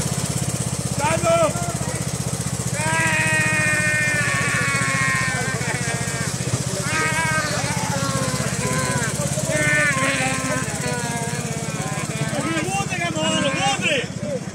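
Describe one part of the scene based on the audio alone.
A man sings and shouts with animation close by.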